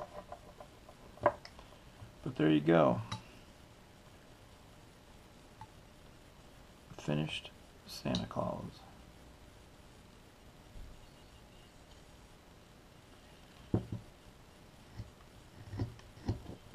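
A carving knife scrapes and shaves wood in short strokes.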